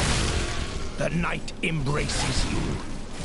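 A magical blast bursts with a loud boom.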